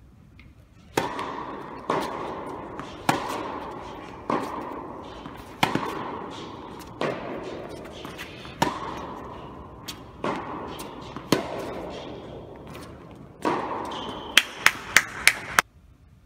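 Tennis balls are struck sharply with rackets, echoing in a large hall.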